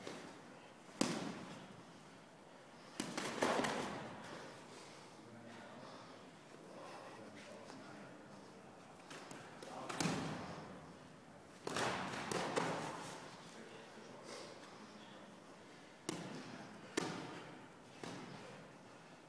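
Boxing gloves thud sharply against bodies and gloves in a large, echoing hall.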